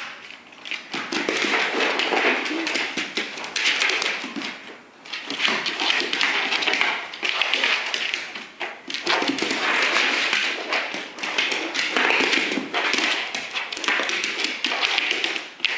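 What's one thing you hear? A dog's claws scrabble and click on a hardwood floor.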